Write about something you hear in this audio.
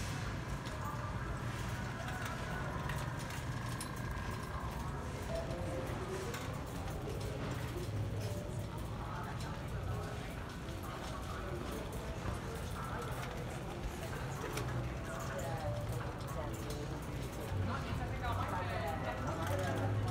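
A shopping cart rattles as it rolls along a hard floor.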